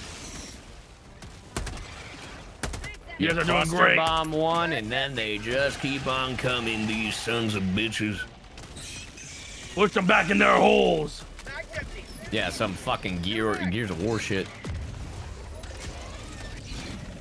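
Rapid gunfire bursts out in short volleys.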